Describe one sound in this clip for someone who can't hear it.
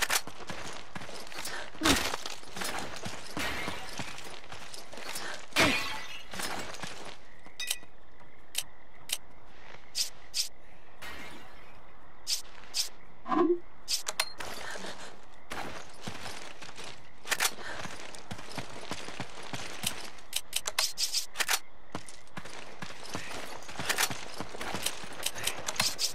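Footsteps crunch on dirt ground.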